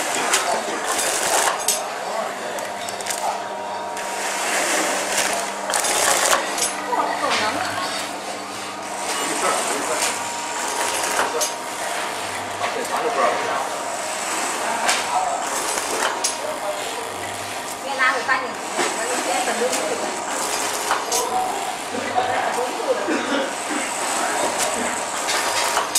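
A packaging machine clacks in a repeating rhythm.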